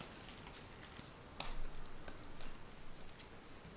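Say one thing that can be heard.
Crumbs pour into a tray with a soft patter.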